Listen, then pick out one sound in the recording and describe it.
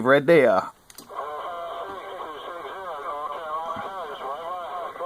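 A radio receiver hisses with static.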